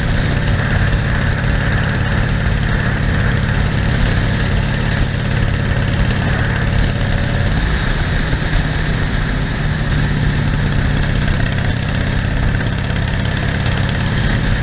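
A Harley-Davidson Sportster V-twin motorcycle rumbles as it cruises along a road.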